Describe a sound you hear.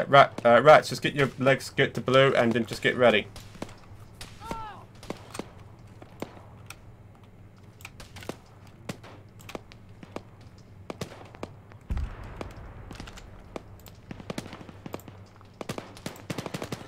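Footsteps crunch steadily on a dirt road.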